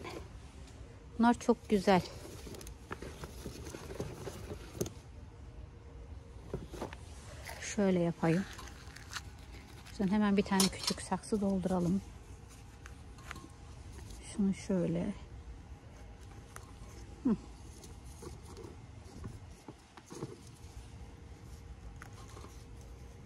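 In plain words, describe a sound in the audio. Succulent plants rustle as they are handled.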